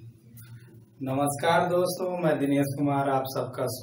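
A young man speaks calmly and clearly, close by.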